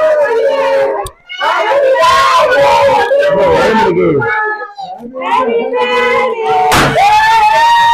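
A party popper bursts with a loud pop.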